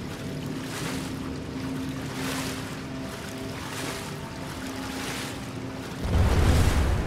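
Water sloshes and splashes with each step of someone wading.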